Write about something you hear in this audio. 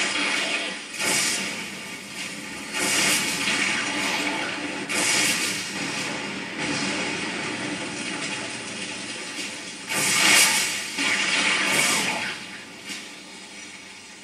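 Spells blast and roar in a video game played through a television speaker.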